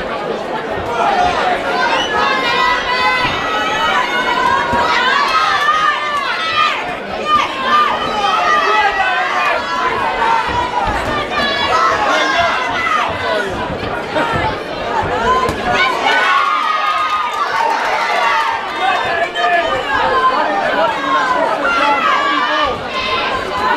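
Boxing gloves thud against a boxer.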